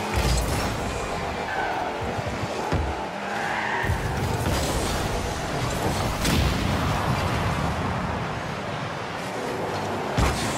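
A game car's engine roars and boosts steadily.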